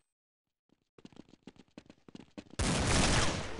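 Quick footsteps clatter on a hard surface.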